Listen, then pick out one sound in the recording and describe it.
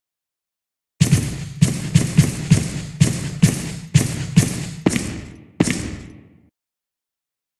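A pistol fires a rapid series of shots that ring out in a room.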